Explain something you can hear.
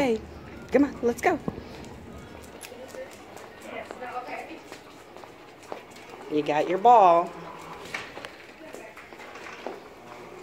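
A dog's claws click and patter on a hard floor.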